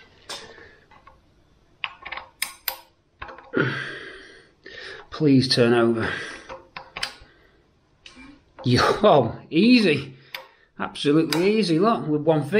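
A metal socket clicks against a bolt.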